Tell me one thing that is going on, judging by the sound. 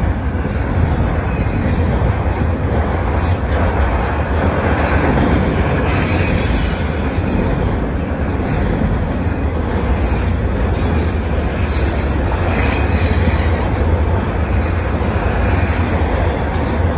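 A freight train rumbles past close by, its wheels clattering steadily on the rails.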